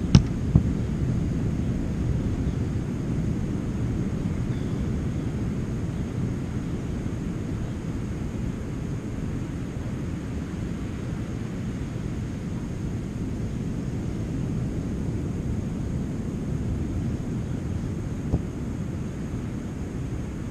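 Wind blows steadily across an open beach, rumbling into a nearby microphone.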